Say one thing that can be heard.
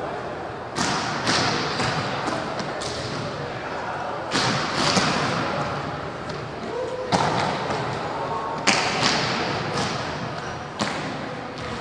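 A volleyball is struck hard, with sharp smacks echoing in a large hall.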